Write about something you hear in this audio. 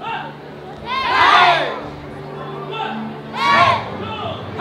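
A group of children shout together sharply.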